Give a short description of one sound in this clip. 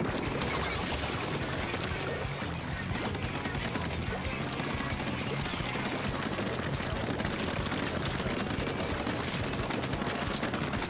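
Game music with a steady beat plays throughout.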